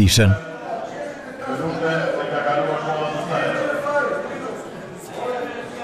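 A middle-aged man speaks heatedly into a microphone.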